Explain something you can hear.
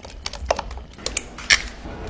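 An egg cracks against the rim of a pan.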